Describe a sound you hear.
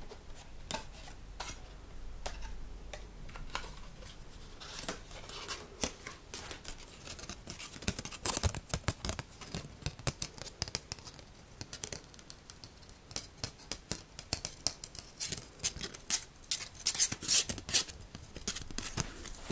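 Cardboard packaging rustles and crinkles close by.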